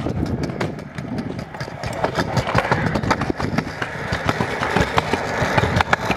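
Small hard wheels roll and clatter on concrete.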